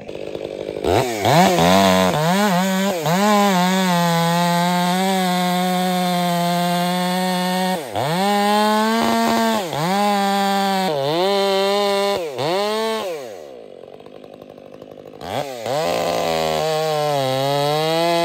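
A chainsaw engine roars loudly, revving up and down as it cuts into wood.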